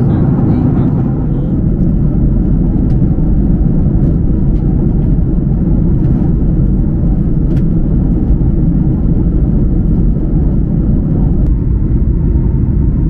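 A jet airliner's engines roar steadily in a low, constant rumble inside the cabin.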